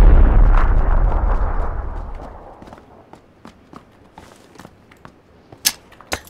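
Footsteps clank on a ladder in quick, even steps.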